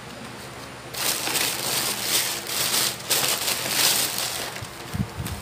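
Cloth rustles as it is handled.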